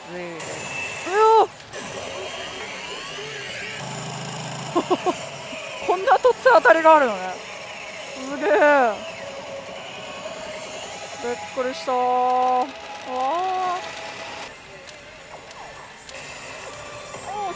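A pachinko machine plays loud electronic music and sound effects.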